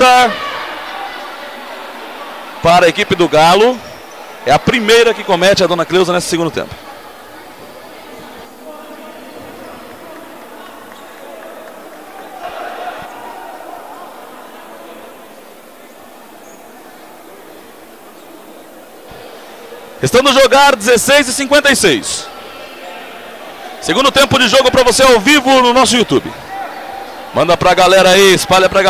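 Spectators murmur faintly in a large echoing hall.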